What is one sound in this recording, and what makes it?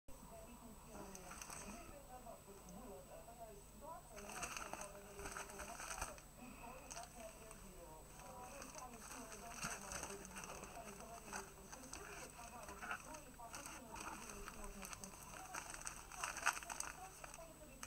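A plastic mailing bag crinkles and rustles up close.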